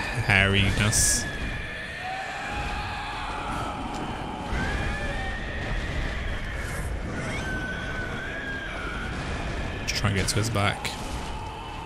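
A huge beast roars and snarls.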